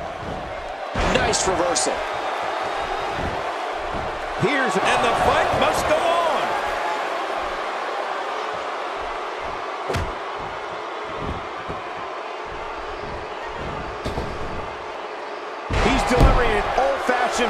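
Heavy thuds sound as bodies slam onto a wrestling mat.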